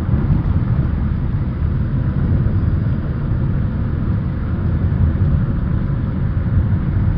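A vehicle rumbles steadily as it drives along a road.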